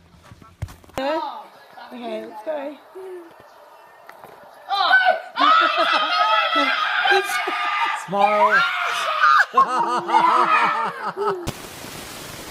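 A young girl talks and laughs excitedly close by.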